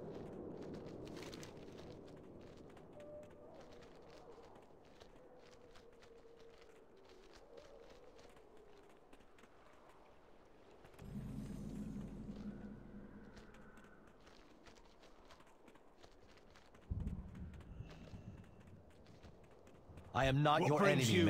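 Hooves thud steadily as a mount runs along a dirt path.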